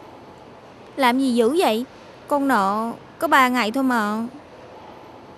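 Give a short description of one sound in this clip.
A young woman answers in a troubled voice.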